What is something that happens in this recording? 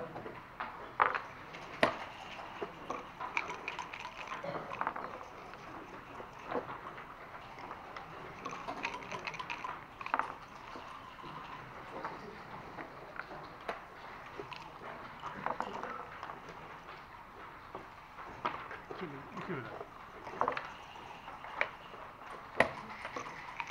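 Dice rattle and tumble onto a board.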